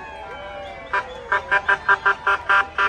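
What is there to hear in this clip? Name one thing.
A vehicle horn blares in quick repeated blasts.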